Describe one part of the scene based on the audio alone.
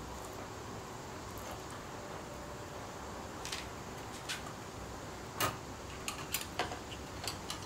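Soft taps sound as meat patties are set down on a wire rack.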